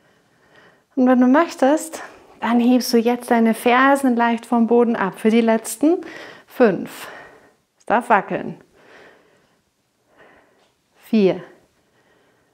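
A woman speaks clearly and with energy into a close microphone.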